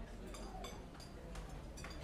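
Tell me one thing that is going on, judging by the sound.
Fingers tap on a phone's touchscreen.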